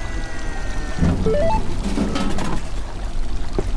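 A can drops out of a vending machine with a clunk.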